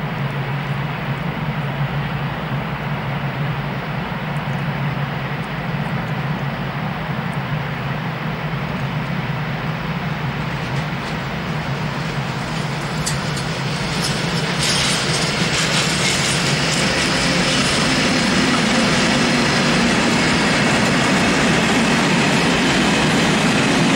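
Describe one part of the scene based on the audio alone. A freight train rumbles past on the tracks.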